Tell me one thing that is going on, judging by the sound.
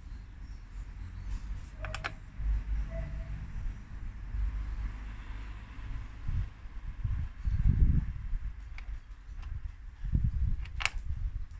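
Small metal tool parts click against an engine cover.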